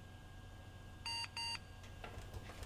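A computer beeps twice.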